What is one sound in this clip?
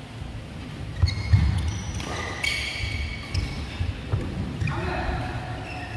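Shoes squeak on a court floor in a large echoing hall.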